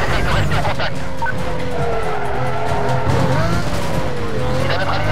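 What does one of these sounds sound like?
A race car engine roars at high speed, its pitch gliding up and down.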